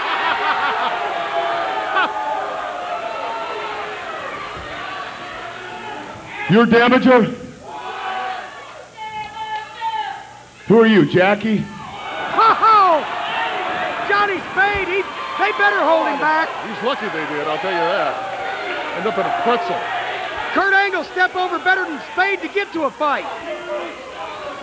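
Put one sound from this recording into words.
A crowd cheers and jeers throughout.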